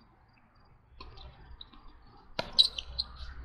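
A tennis ball is hit with a racket with a sharp pop.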